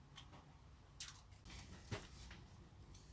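Plastic film crinkles.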